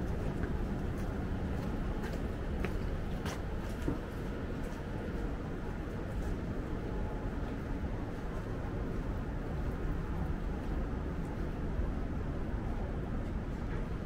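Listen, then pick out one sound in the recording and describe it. Footsteps tap on wet paving stones.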